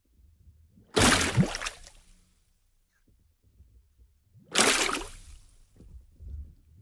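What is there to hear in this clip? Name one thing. Strawberries splash into water.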